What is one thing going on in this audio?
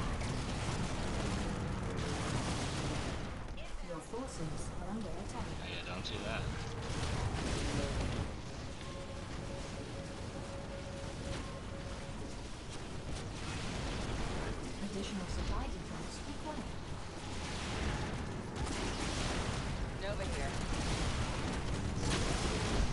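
Gunfire and explosions crackle and boom in a game battle.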